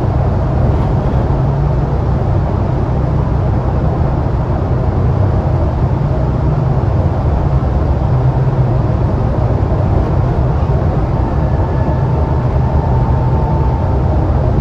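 Tyres roar on the road inside an echoing tunnel.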